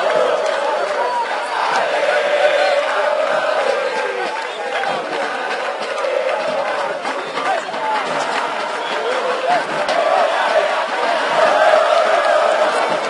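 A crowd of spectators chants and shouts loudly outdoors.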